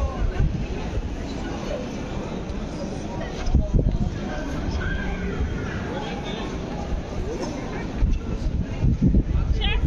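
A crowd of people chatters outdoors nearby.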